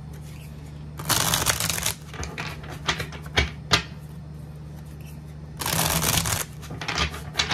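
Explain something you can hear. A deck of playing cards riffles quickly as it is shuffled.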